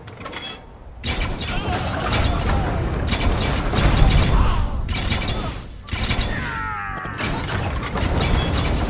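Weapons clash and thud in a noisy battle.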